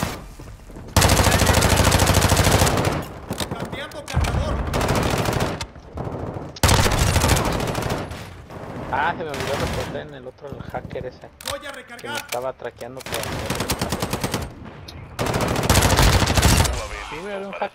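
Rapid bursts of submachine gun fire ring out loudly.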